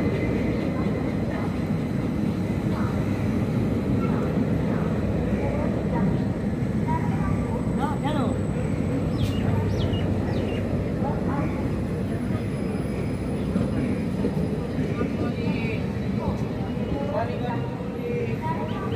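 Train wheels clatter over the rail joints.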